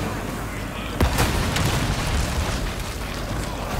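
An explosion booms and rumbles nearby.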